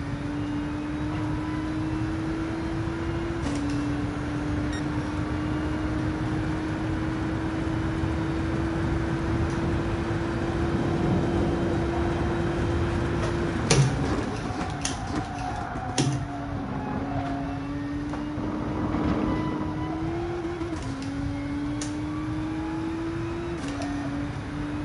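A racing car engine roars and climbs in pitch, dropping at each gear change.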